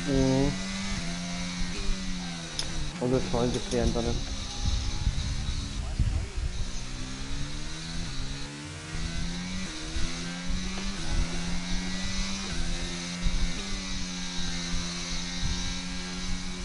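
A racing car engine whines loudly, rising and falling in pitch as the gears shift.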